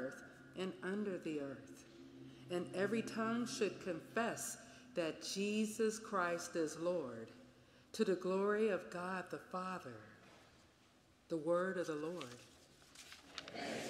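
A woman reads aloud into a microphone in a large echoing room.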